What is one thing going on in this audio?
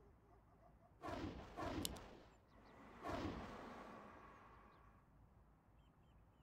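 Magic blasts whoosh and boom in a video game battle.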